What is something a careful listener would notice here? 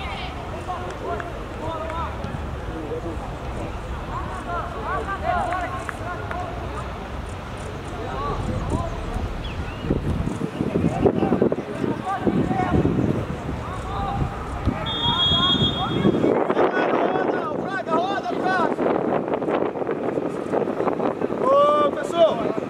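Young players shout to each other across an open outdoor field.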